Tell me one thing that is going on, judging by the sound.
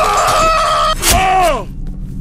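A metal bar strikes a body with a heavy thud.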